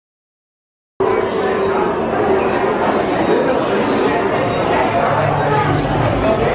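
A crowd of people chatters all around in an echoing indoor hall.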